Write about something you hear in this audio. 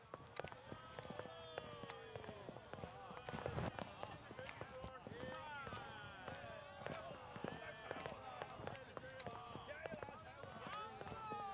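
Footsteps tap on a paved street.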